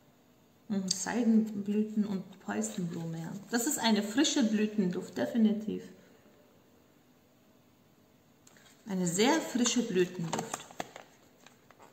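A woman talks calmly and closely to a microphone.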